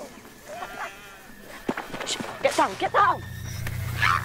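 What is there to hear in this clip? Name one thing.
Children shout and laugh.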